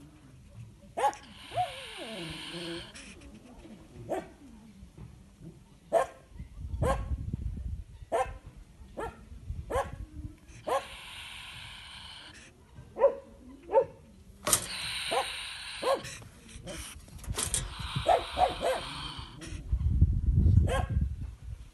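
A small animal lets out short, sharp yelps.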